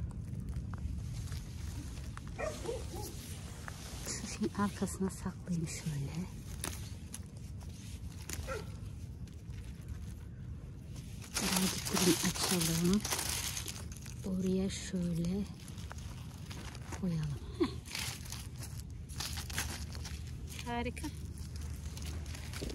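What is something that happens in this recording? Succulent leaves rustle and snap as a hand pulls at a plant.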